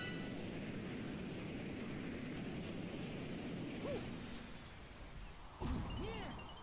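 Wind rushes past in a loud whoosh.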